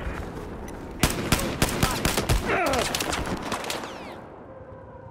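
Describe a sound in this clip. Rifle shots fire in rapid bursts, loud and close.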